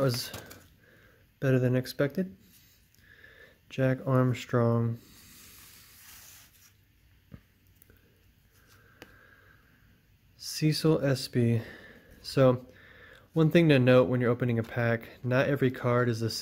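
Cards slide and flick against one another.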